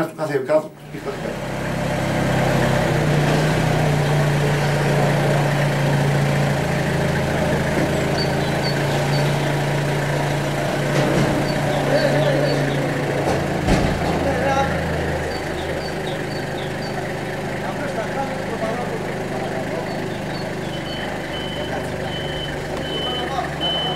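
A forklift engine hums steadily outdoors.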